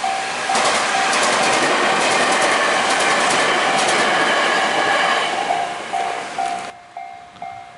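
A train rushes past close by with loud rumbling and clattering wheels.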